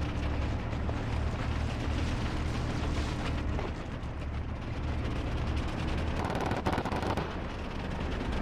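Tank tracks clank and squeak over the ground.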